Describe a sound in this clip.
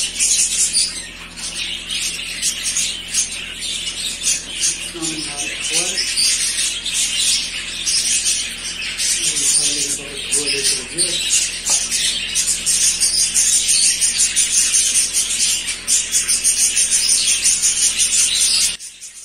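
Many small birds chirp and twitter steadily nearby.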